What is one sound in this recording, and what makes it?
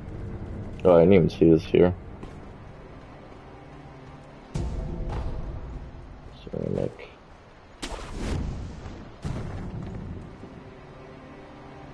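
A warrior leaps and lands with a thud.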